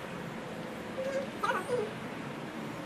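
A girl laughs softly close by.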